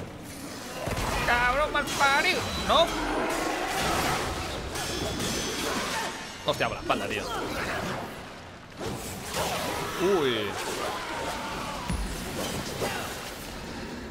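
Blades clash and slash in game combat.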